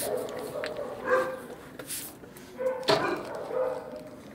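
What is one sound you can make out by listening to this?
Water sloshes and splashes in a tub.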